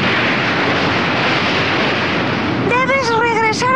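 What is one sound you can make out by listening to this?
A waterfall roars loudly.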